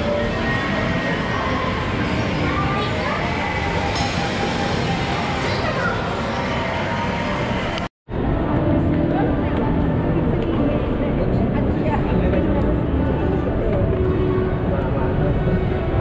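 A crowd murmurs in a busy indoor space.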